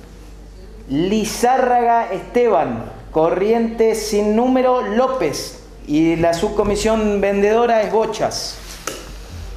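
A man reads out aloud close by, his voice muffled by a mask.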